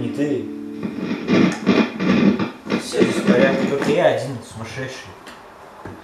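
An electric guitar plays loud, distorted chords.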